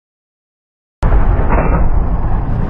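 A gunshot booms and rings out.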